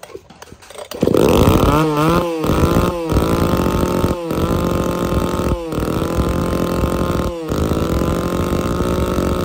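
An electric belt sander starts up and runs with a loud, steady whine.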